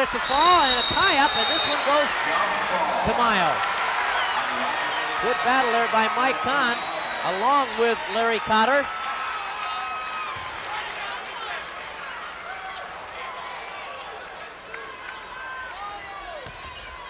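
A large crowd roars and cheers in an echoing arena, slowly quieting down.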